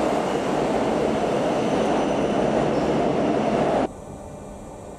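A train rumbles loudly past along a platform.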